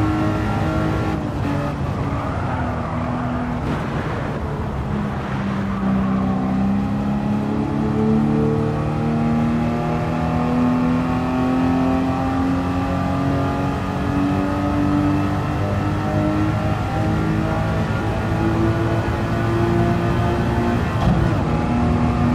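A racing car engine drops in pitch and then climbs again as it accelerates.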